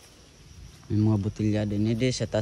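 A man speaks nearby.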